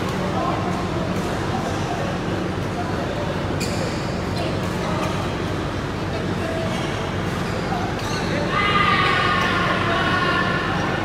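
Shuttlecocks are struck with rackets, with sharp pops echoing in a large hall.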